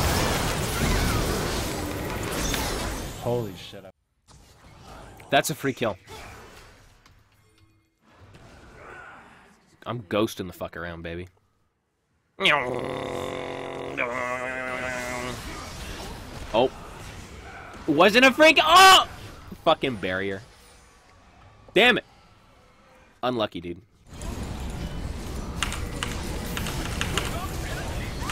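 Video game fight effects clash and whoosh.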